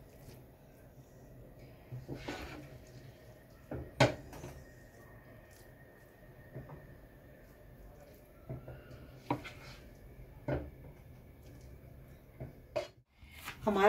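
A spoon scrapes and clinks against a ceramic dish while stirring a thick mixture.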